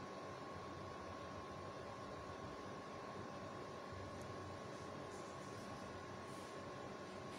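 A small cooling fan whirs steadily.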